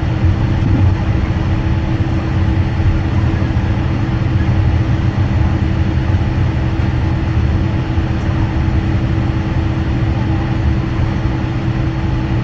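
A jet engine hums steadily as an aircraft taxis.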